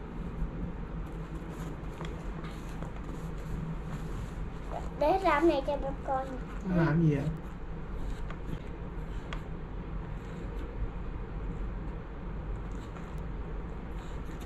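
A plastic tool scrapes and pats soft sand.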